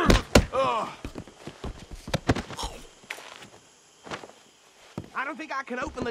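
Fists thud in punches.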